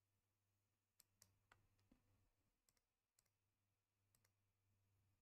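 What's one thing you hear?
Short digital clicks and chimes play.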